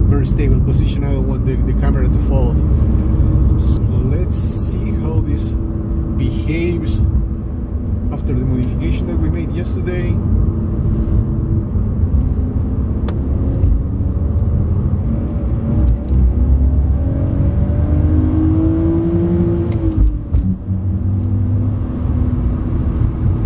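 A car engine roars loudly as it revs up through the gears.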